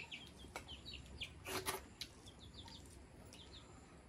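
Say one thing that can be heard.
A woman slurps from a metal bowl.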